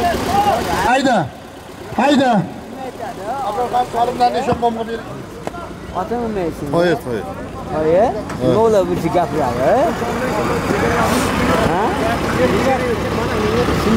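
A large crowd murmurs and shouts in the distance outdoors.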